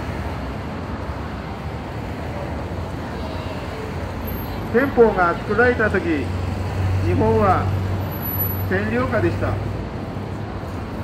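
Street traffic and crowd noise rumble steadily in the background.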